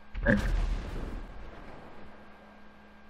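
An explosion booms and fades.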